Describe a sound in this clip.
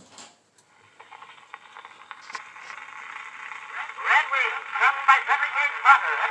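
A phonograph cylinder hisses and crackles with surface noise.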